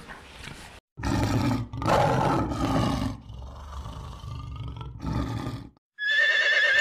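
A tiger roars loudly.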